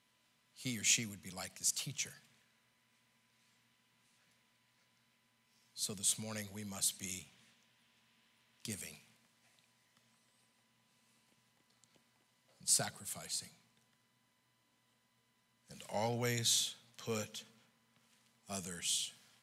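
A middle-aged man preaches through a microphone in short, emphatic bursts with pauses between.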